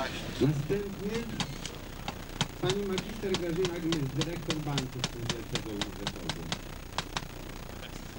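A hammer taps nails rapidly into wood.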